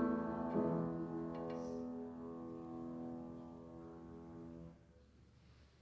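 A piano plays softly in a quiet room and fades away.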